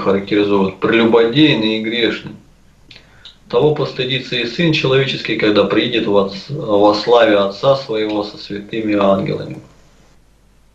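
An elderly man speaks calmly and steadily, close to a microphone.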